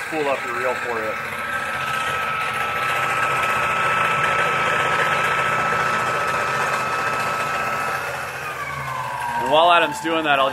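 A spooling machine whirs steadily, then slows and winds down.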